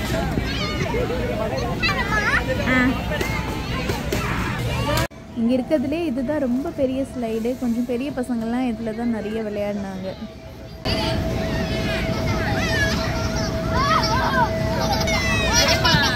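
Children shriek and squeal with excitement nearby.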